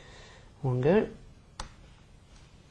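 A screwdriver clicks against metal screws.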